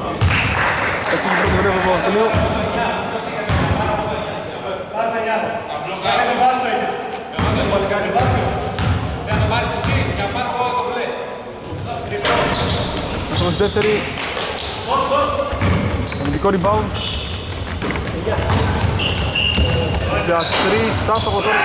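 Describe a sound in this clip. A basketball thumps as it bounces on the floor.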